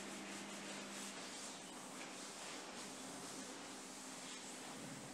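A cloth rubs over a car body by hand.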